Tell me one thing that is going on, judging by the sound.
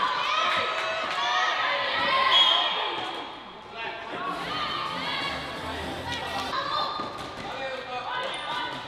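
Spectators shout and cheer in an echoing indoor hall.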